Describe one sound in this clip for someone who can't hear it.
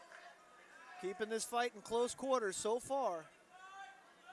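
A crowd of spectators shouts and cheers loudly nearby.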